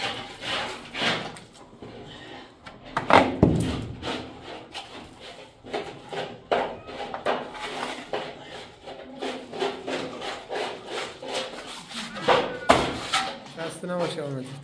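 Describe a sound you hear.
A trowel scrapes plaster across a wall.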